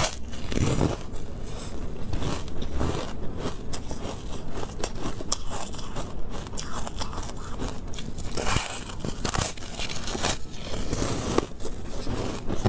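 Jelly-like food squishes and crackles in hands close to a microphone.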